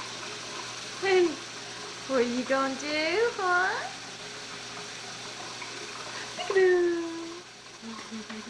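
A baby babbles and squeals in a high voice close by.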